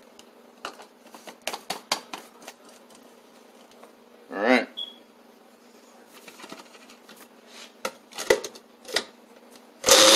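A blender lid is screwed on and clicks into place.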